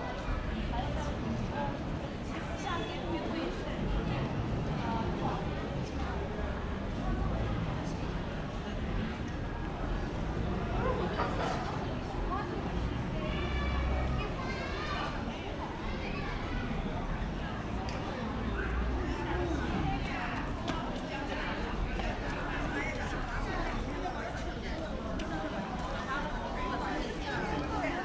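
People chatter in the distance outdoors.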